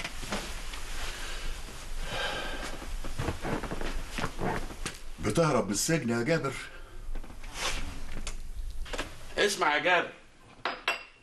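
An older man speaks sternly nearby.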